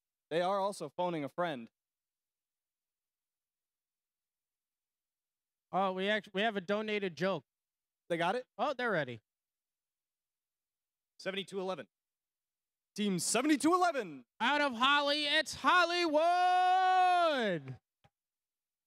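A man announces loudly through a loudspeaker, in short bursts, with a drawn-out call at the end.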